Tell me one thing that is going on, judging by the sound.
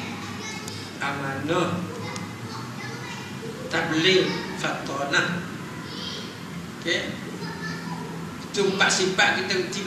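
An elderly man speaks calmly into a microphone in an echoing room.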